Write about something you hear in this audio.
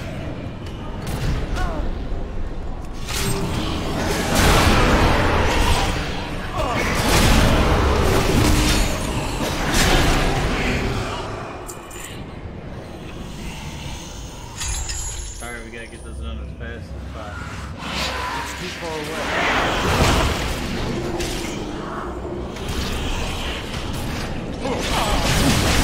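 A man speaks into a close microphone with animation.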